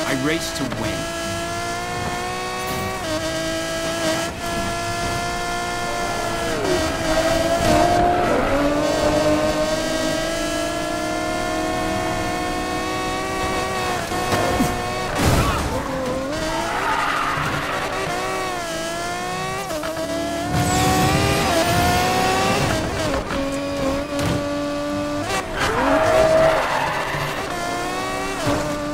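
A racing car engine roars at high revs, shifting gears as it speeds up and slows.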